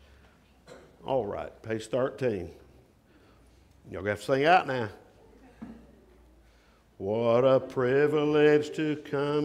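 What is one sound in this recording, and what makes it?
A middle-aged man speaks slowly and earnestly into a microphone, in a room with some echo.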